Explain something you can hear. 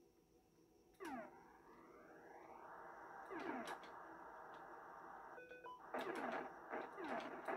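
A video game fires rapid, falling electronic zaps.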